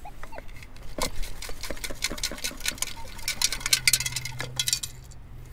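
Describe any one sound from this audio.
Sand rattles and hisses through a metal sifting scoop.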